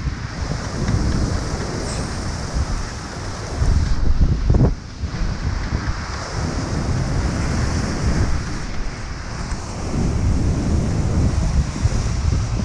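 Rough waves crash and surge against a sea wall.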